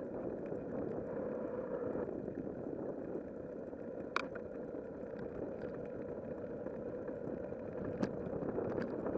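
Tyres roll steadily over a paved path.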